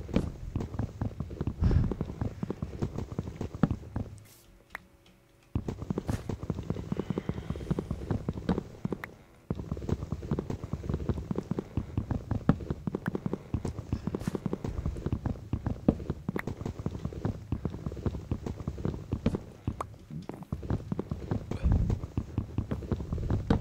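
Wooden blocks thump softly as they are placed one after another.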